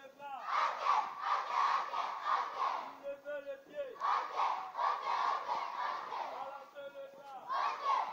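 A crowd of children sings loudly together outdoors.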